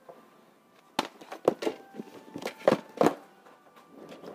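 Plastic game cases clack against each other as they are flipped through.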